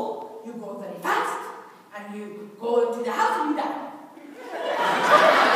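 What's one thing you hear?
A middle-aged woman speaks with animation through a microphone in a large hall.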